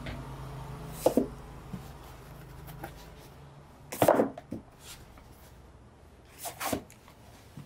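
A book slides onto a wooden shelf and knocks against other books.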